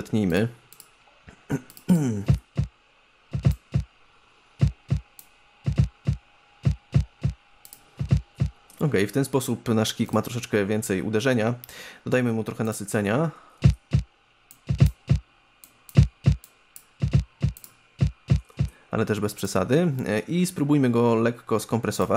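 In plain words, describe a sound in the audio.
Electronic music with punchy drum hits plays.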